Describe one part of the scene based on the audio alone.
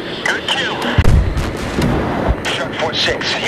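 A bomb explodes with a deep, rumbling boom.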